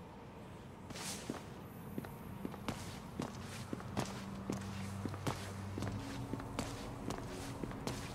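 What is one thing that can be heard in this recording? Footsteps tap on a hard stone floor at a steady walking pace.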